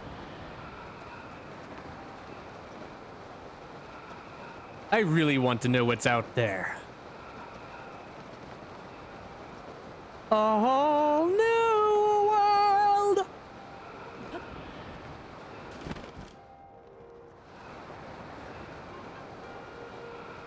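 Wind rushes past steadily during a long fall.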